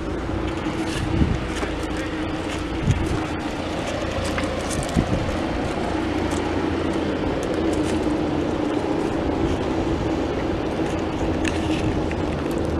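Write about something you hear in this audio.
A tractor engine idles nearby with a steady hum.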